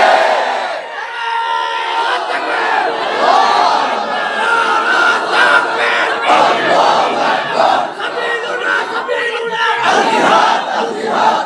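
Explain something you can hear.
A man preaches with animation into a microphone, heard through loudspeakers.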